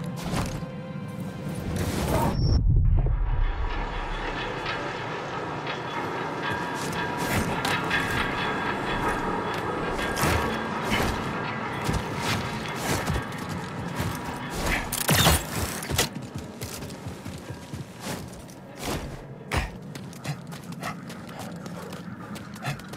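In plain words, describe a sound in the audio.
Strong wind howls steadily.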